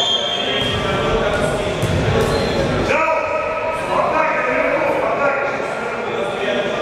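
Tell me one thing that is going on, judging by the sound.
Young spectators chatter and shout in a large echoing hall.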